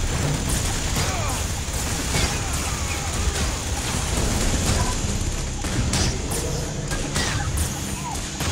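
Small guns fire in rapid bursts.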